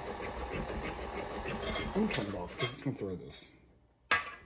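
A stand mixer whirs as it beats batter.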